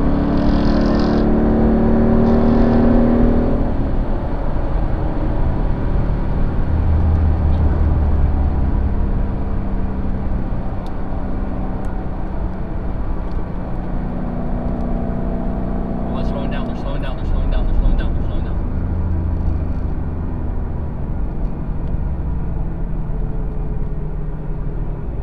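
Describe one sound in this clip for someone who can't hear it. Wind and road noise rush past the car.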